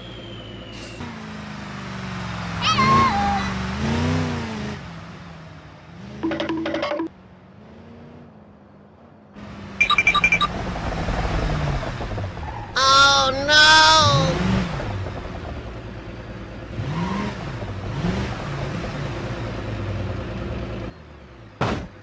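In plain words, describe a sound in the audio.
A car engine hums and revs as it drives along.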